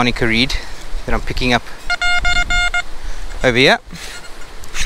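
A metal detector gives warbling, rising and falling tones.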